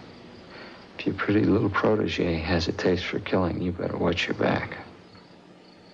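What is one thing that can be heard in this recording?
An elderly man speaks quietly and intently up close.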